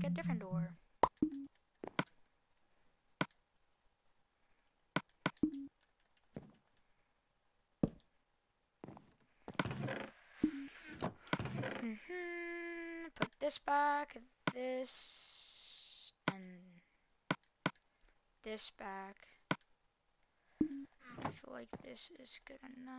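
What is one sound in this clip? Short menu clicks sound now and then from a video game.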